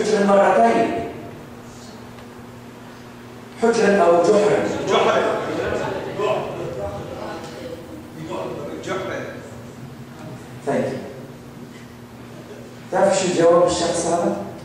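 An older man speaks with animation through a microphone, with pauses, his voice filling an echoing hall.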